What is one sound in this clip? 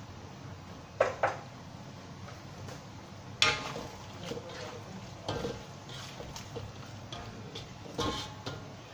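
A metal spatula scrapes and knocks against a wok while stirring.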